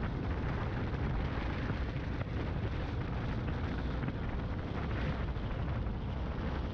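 Wind rumbles and buffets steadily against a moving microphone outdoors.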